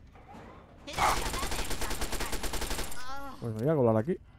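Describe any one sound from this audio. A submachine gun fires a rapid, loud burst of shots.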